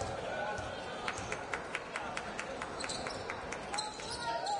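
A basketball bounces repeatedly on a wooden floor.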